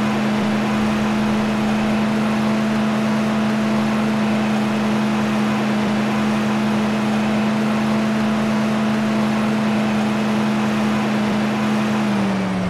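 A heavy tank engine drones steadily, dropping in pitch near the end.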